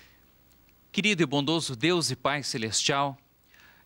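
A man speaks clearly and calmly into a microphone.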